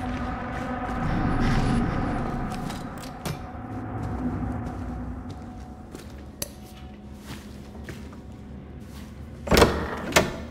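Footsteps thud softly on carpet.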